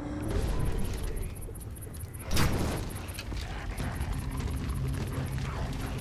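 A wooden bow creaks as its string is drawn.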